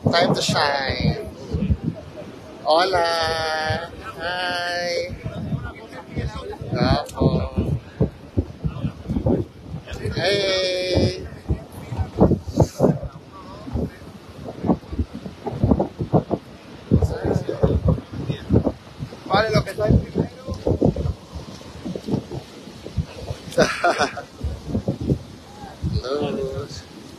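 Young men talk and laugh close by, with animation.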